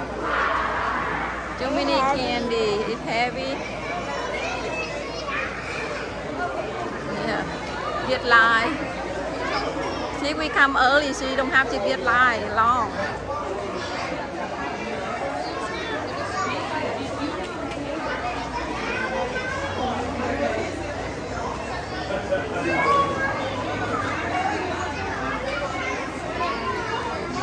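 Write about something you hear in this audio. A crowd chatters all around in a large echoing hall.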